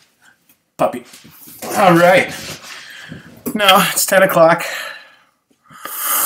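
A man laughs and talks with animation close to the microphone.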